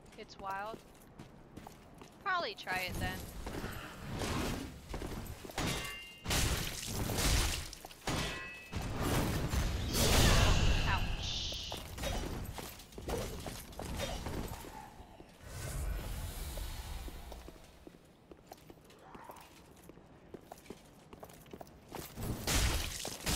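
Swords clash and strike in sharp bursts.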